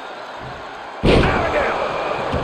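A body slams hard onto a ring mat.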